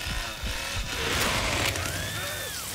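A chainsaw revs loudly.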